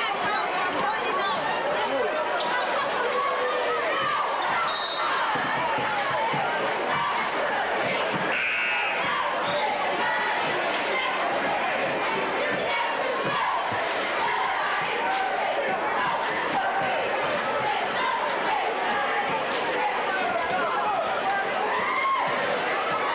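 A large crowd chatters and cheers, echoing in a big indoor hall.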